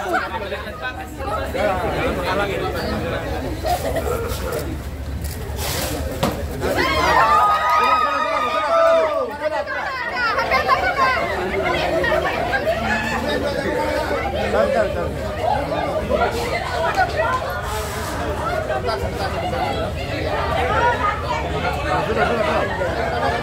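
A crowd of men and women chatter and call out excitedly close by.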